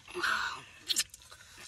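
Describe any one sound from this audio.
A young man slurps a drink.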